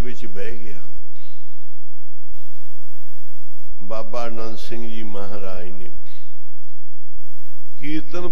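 An elderly man speaks slowly through a microphone, in short phrases with pauses.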